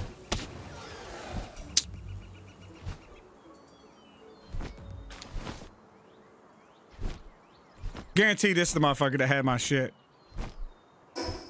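Large wings flap with heavy whooshing beats.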